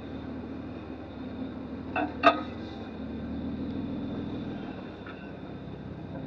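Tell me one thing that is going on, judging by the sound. A motorbike engine idles and putters steadily at low speed.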